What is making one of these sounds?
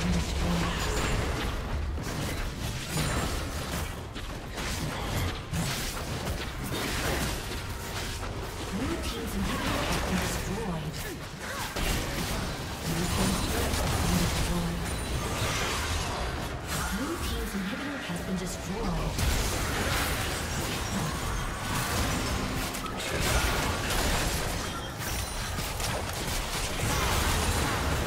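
Magic spells blast, whoosh and crackle in a fast fight.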